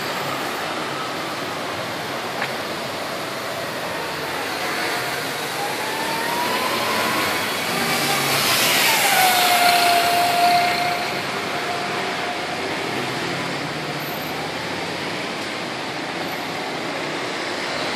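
Motor scooters drone past.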